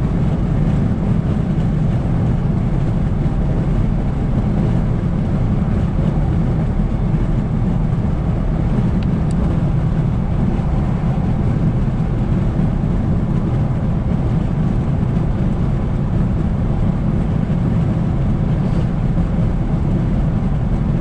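A car's engine hums steadily from inside while driving.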